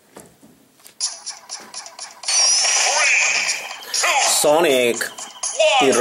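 Video game music and sound effects play through a small speaker.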